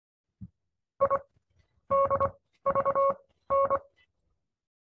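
A steady electronic tone beeps out a Morse code pattern of short and long beeps.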